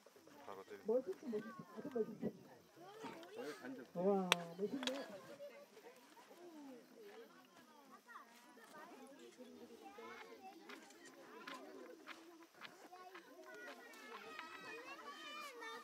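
Small stone flakes snap and click off under a hand tool.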